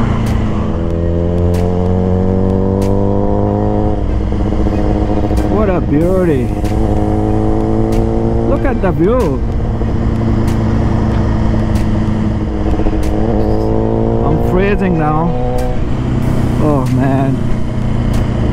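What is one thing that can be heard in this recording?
A motorcycle engine hums steadily, its pitch rising and dipping as it shifts gears.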